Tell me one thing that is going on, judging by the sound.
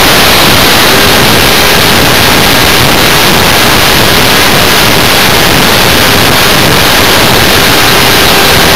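A small electric motor whines steadily.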